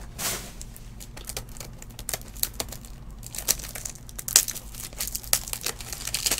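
A plastic box clicks as fingers handle it.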